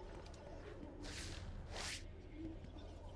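A cape flutters with a soft rushing swoosh.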